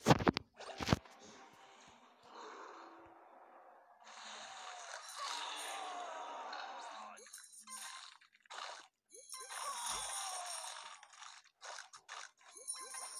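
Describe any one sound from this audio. A shark's jaws crunch and chomp as it bites fish underwater.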